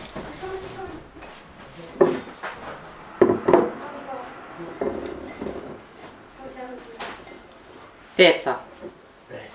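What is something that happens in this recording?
Flower stems rustle as a woman arranges them.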